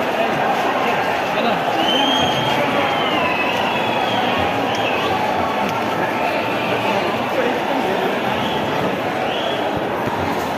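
A large stadium crowd roars and chatters loudly all around.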